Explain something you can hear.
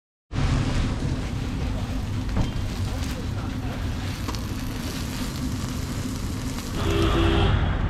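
Oil sizzles on a hot griddle.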